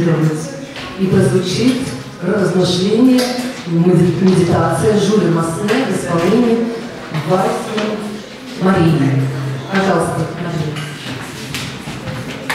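A middle-aged woman speaks with animation through a microphone and loudspeakers in an echoing hall.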